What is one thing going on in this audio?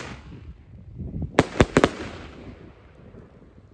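Fireworks crackle in a quick rattling burst.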